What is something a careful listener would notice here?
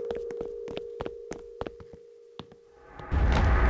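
Footsteps tap quickly on wooden ladder rungs.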